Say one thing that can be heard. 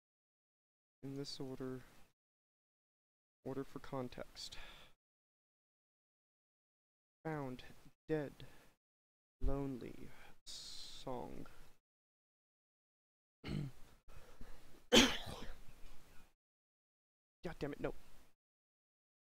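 A man talks calmly into a microphone in short bursts.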